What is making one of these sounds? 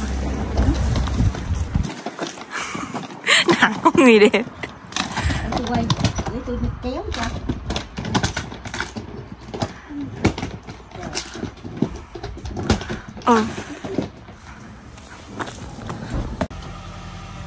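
A suitcase bumps and clatters up stone steps.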